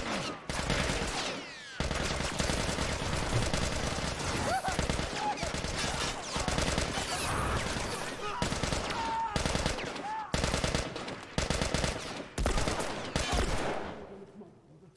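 Gunshots crack and echo in quick bursts.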